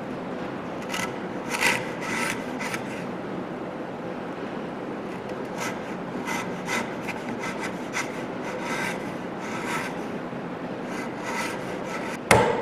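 A chisel scrapes and pares thin shavings from wood.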